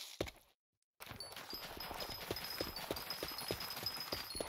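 Crops rustle and pop quickly as they are broken in a video game.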